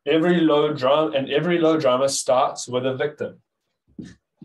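A young man speaks calmly, heard through an online call.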